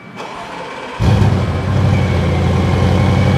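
A car engine starts with a roar and settles into a deep, rumbling idle.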